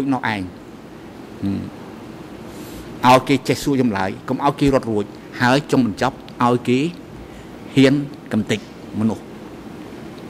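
An elderly man speaks calmly and firmly into a microphone.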